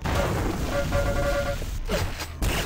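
An electric beam weapon hums and crackles.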